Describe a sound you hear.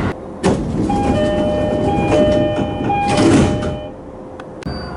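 A door chime beeps in a steady pattern.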